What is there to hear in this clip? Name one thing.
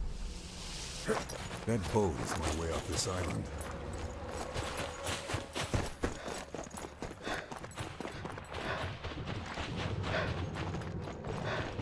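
Footsteps crunch on snow as a man runs.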